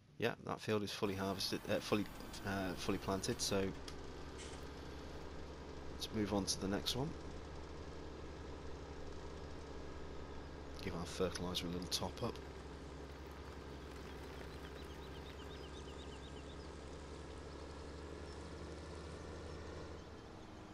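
A tractor engine hums steadily as it drives along.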